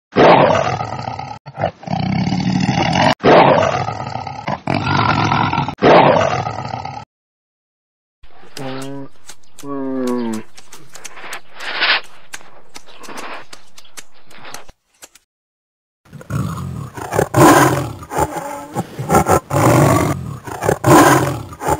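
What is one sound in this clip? A tiger roars loudly.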